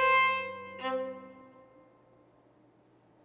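A string ensemble plays two loud final chords that ring out and fade in a reverberant hall.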